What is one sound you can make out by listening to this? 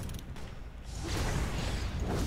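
A burst of energy whooshes loudly.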